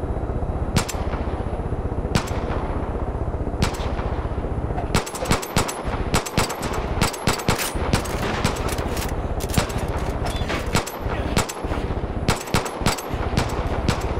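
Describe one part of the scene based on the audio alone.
Pistol shots ring out, first spaced apart and then in rapid bursts.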